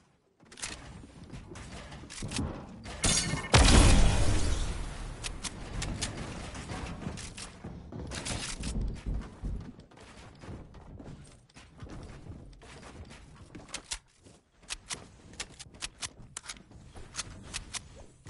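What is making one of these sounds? Building pieces click and snap into place in quick bursts.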